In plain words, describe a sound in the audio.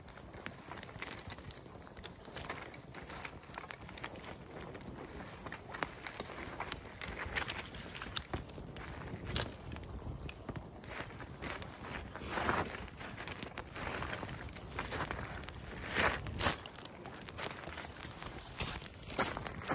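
A small fire of dry twigs crackles outdoors.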